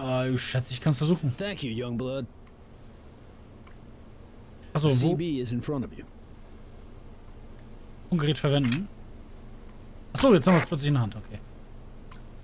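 A man speaks calmly in short lines, heard close.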